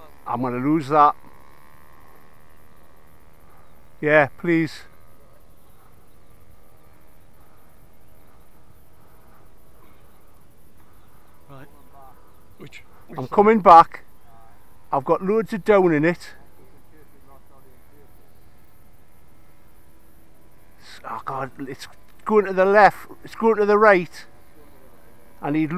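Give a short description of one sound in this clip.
A man talks close by in short bursts outdoors.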